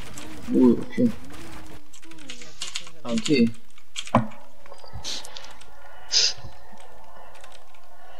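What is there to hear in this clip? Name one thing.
Keys on a mechanical keyboard clatter quickly.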